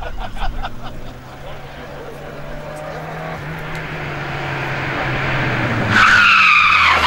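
A rally car engine approaches, roaring louder.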